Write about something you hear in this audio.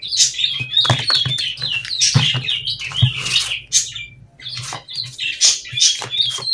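Playing cards slide across a table as they are spread out.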